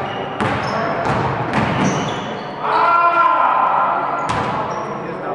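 A basketball thuds on a hard floor.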